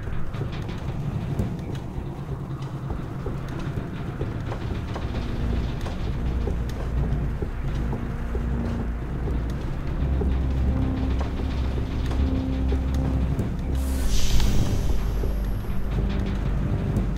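A crane's motor hums and rumbles as it lowers a load.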